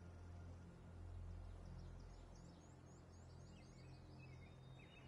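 Footsteps pad softly on grass.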